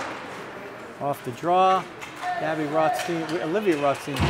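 Spectators shout and cheer loudly in an echoing rink.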